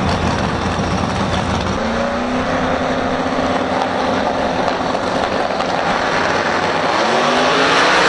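Drag racing engines idle with a loud, lumpy rumble.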